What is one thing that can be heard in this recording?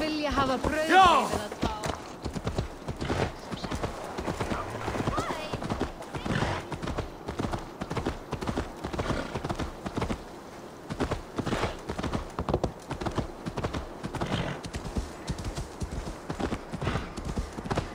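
Horse hooves thud rhythmically on packed snow.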